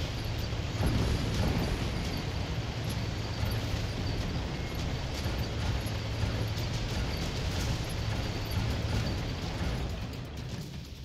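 A heavy vehicle's engine rumbles steadily as it rolls along.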